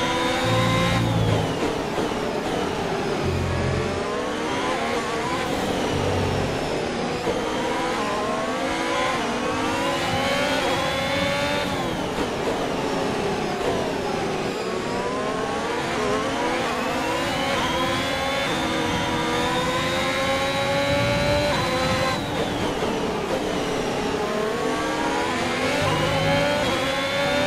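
A racing car engine screams, rising and falling in pitch as it shifts gears.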